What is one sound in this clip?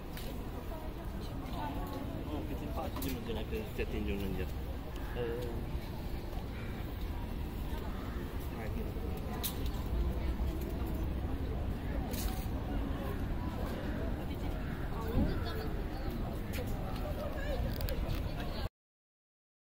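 Footsteps shuffle on paving stones.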